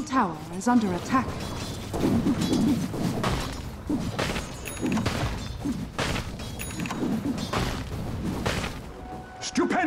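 Game fight effects clash and crackle in quick bursts.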